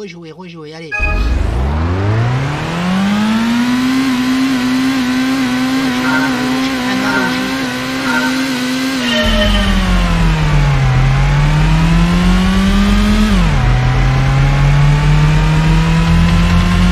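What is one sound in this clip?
A racing car engine revs hard and climbs through the gears.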